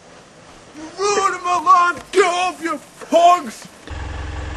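A man talks loudly with animation nearby.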